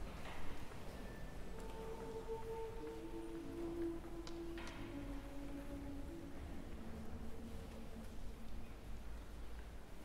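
A mixed choir sings a cappella softly in a large echoing church.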